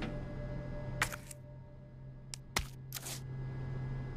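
A metal panel door clicks and clanks open.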